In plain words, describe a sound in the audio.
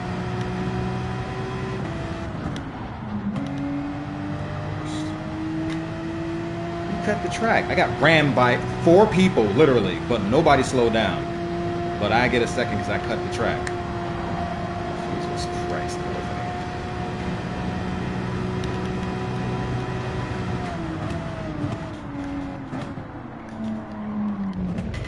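A racing car engine drones steadily at high revs, its pitch climbing and dropping as gears change.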